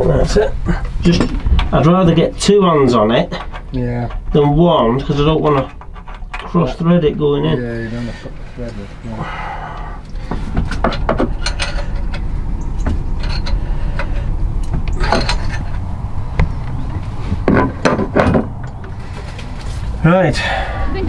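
Metal tools click and clink against an engine.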